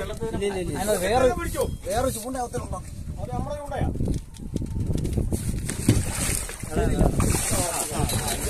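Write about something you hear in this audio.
A large fish splashes and thrashes in the water.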